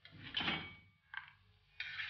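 A metal spoon scrapes against a ceramic plate.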